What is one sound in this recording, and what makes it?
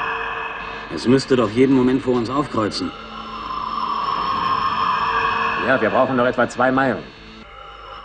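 A man speaks calmly through a helmet radio.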